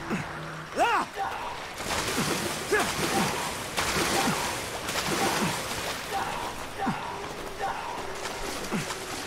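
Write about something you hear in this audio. Water sloshes and splashes as someone wades through a shallow stream.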